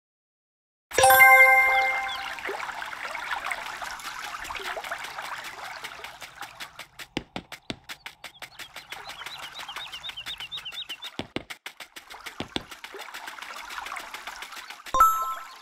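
Light footsteps patter quickly on grass and paths.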